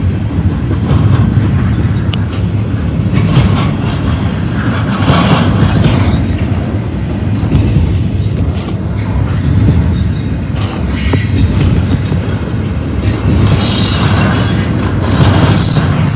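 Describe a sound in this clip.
A freight train rumbles past close by, with a steady low roar.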